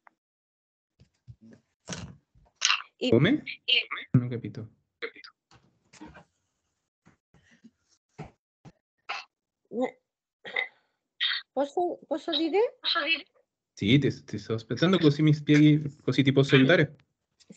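A woman speaks calmly over an online call, with short pauses.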